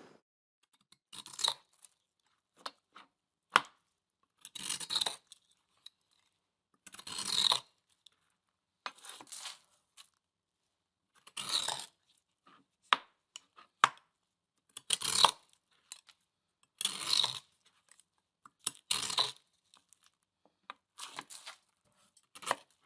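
A knife blade scrapes and shaves hard ice in short crunchy strokes.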